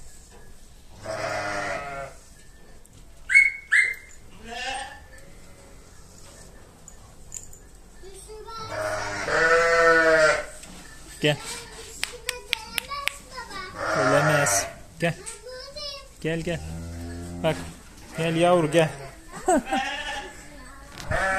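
Sheep bleat loudly close by.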